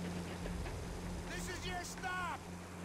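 A man speaks over the engine noise.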